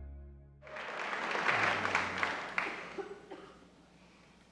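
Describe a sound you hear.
An audience applauds loudly in a large hall, then fades.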